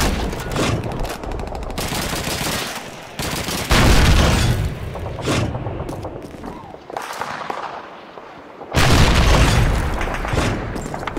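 Rifles fire in rapid bursts nearby.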